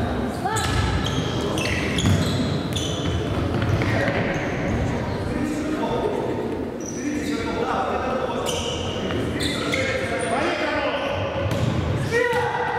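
Children shout during play.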